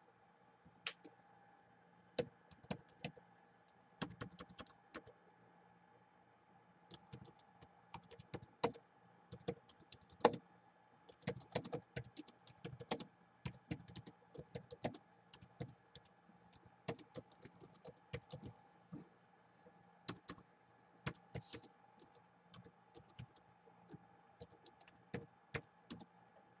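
Fingers tap quickly on a laptop keyboard, with short pauses.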